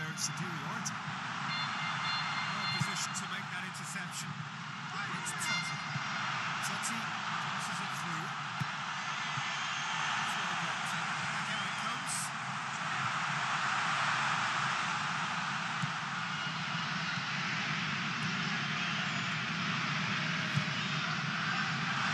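A large stadium crowd roars and chants steadily throughout.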